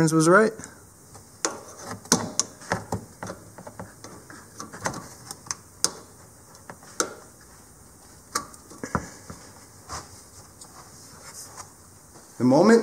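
Metal pliers click and scrape against metal parts.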